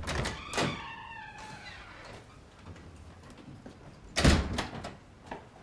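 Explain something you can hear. A door opens and shuts with a thud.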